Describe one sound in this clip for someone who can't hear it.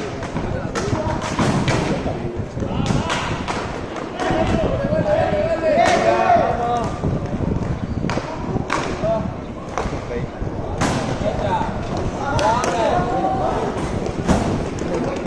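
Inline skate wheels roll and scrape across a hard court.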